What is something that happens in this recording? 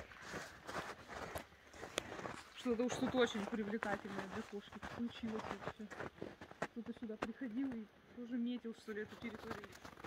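Paws crunch on snow as a large cat walks.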